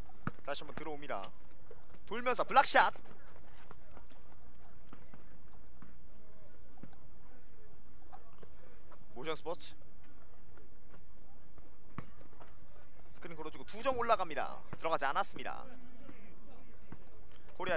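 A basketball bounces on a hard outdoor court.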